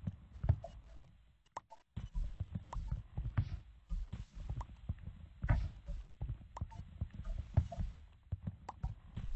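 Wooden blocks knock and thud in quick, uneven succession as they are placed and broken.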